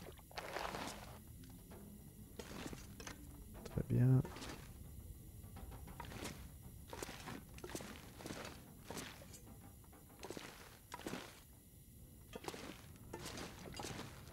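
Footsteps walk slowly across a hard floor.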